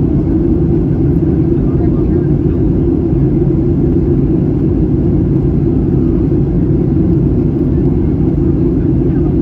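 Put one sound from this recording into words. Jet engines roar steadily and loudly inside an aircraft cabin.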